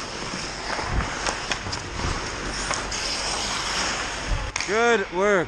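A hockey stick knocks a puck.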